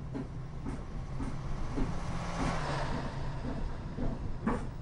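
An oncoming truck rushes past.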